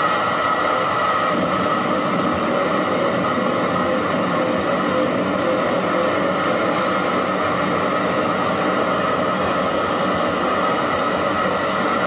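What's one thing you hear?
Dense electronic noise music plays loudly through speakers.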